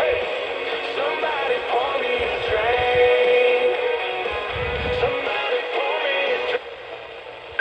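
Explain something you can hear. A small radio speaker plays a broadcast.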